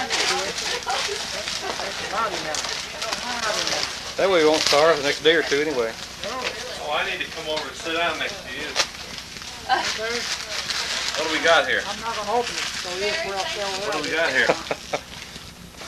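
Several adults talk and laugh together in a room.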